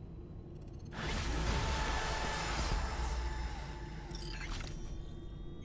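A bright electronic notification chime sounds.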